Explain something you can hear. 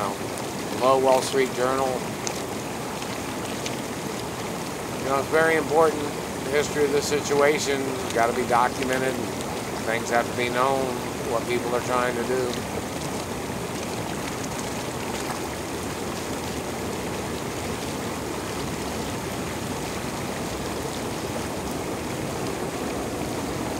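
Water bubbles and hisses steadily in a hot tub.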